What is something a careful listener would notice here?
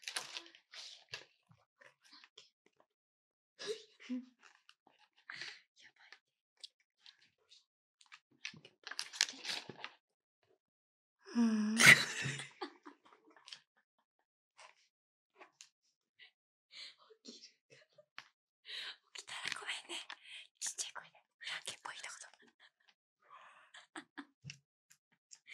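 Two young women whisper softly close to a microphone.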